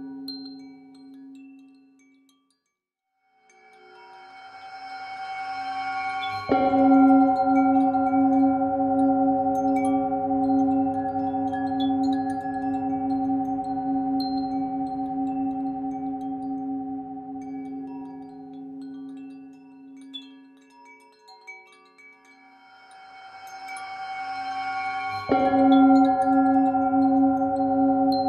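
A metal singing bowl swells into a deep, ringing hum as it is rubbed, then rings out loudly and slowly fades.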